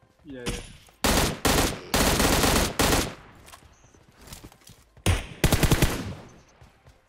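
Gunfire bursts rapidly.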